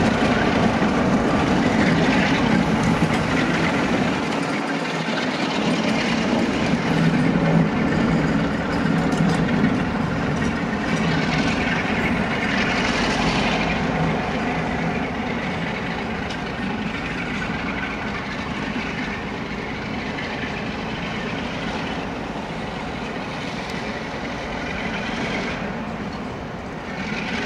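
A diesel locomotive engine rumbles steadily as a train pulls away.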